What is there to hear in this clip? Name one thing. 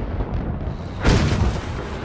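A large explosion booms loudly.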